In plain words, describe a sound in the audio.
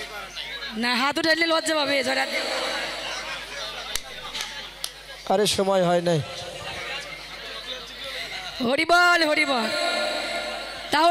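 A woman sings loudly through a microphone over a loudspeaker.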